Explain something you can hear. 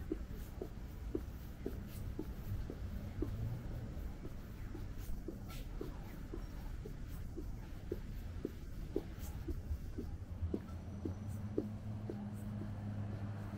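Traffic hums at a distance outdoors.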